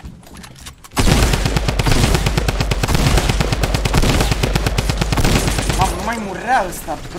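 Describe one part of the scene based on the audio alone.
Gunshots crack rapidly in a video game.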